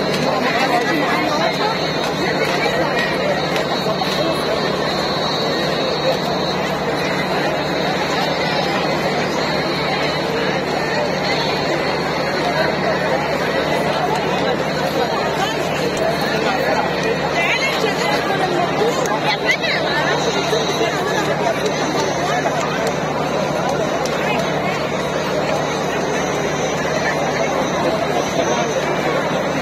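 A large crowd chatters and murmurs all around outdoors.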